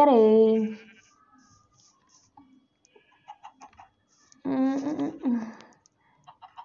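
A sheep bleats loudly.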